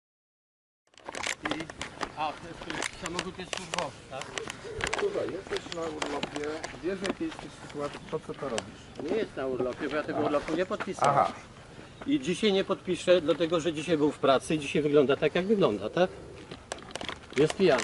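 Men talk with each other outdoors, close by.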